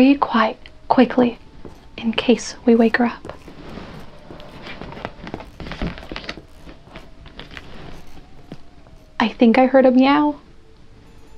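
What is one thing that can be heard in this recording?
A young woman reads aloud expressively, close to a microphone.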